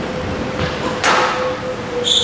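A squash racquet strikes the ball.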